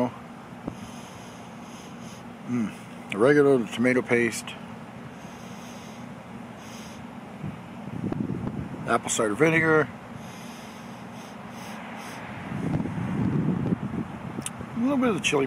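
A man sniffs deeply.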